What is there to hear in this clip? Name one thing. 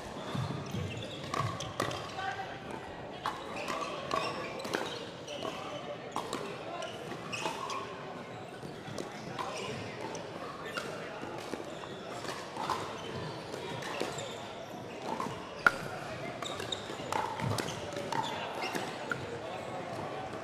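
Sneakers squeak and shuffle on a hard court floor.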